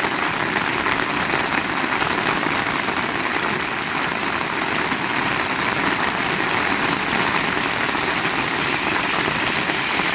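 Steady rain pours down and patters on a wet road outdoors.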